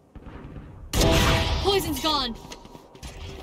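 A sniper rifle fires a single loud, booming shot.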